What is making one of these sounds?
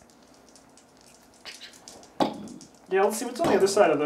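Dice rattle and clatter onto a table.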